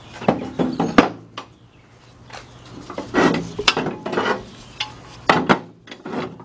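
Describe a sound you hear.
A metal wrench clicks and clanks against an engine.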